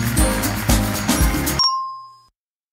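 Game music plays with a bright jingle.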